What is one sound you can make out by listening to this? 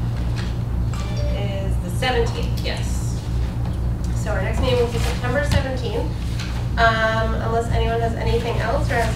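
A woman speaks into a microphone in a room with some echo.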